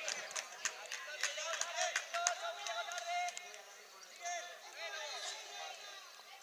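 Children shout and call out to each other outdoors on an open pitch.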